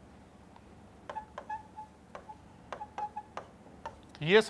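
A marker taps and squeaks on a board.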